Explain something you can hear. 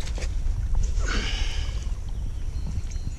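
Water splashes as a fish is released.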